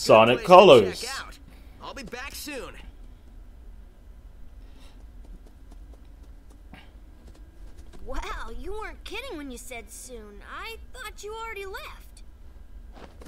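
Cartoon voices speak with animation.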